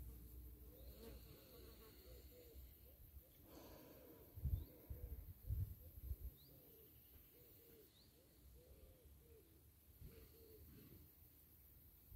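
A man speaks softly and calmly, close by.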